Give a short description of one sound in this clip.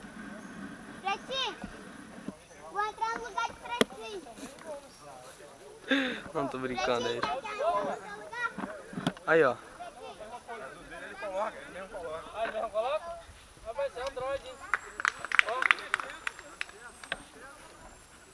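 Men and boys shout and call out across an open field outdoors.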